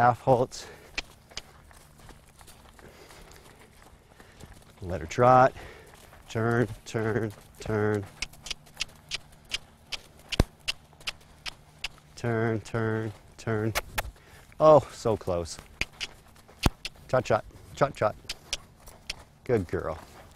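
A man talks calmly to a horse nearby, outdoors.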